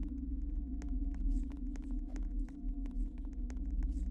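Fingers tap quickly on a touchscreen keyboard.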